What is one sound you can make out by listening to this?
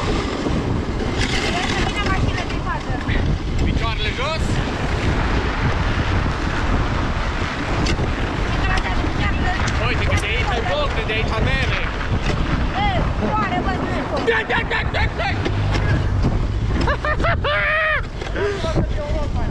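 A young man talks loudly and excitedly close by.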